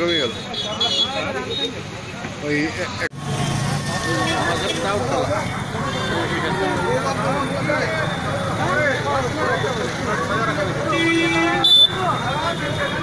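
A crowd of men talks and shouts loudly nearby, outdoors.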